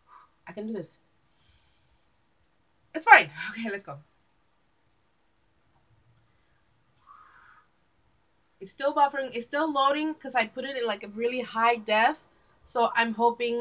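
A woman speaks close by with animation, in short bursts.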